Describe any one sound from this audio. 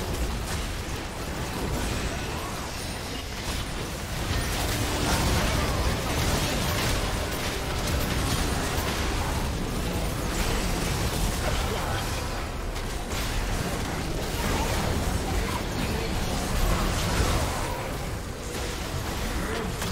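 Game battle effects crackle, whoosh and boom in quick bursts.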